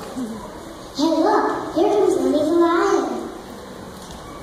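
A young girl speaks loudly into a microphone.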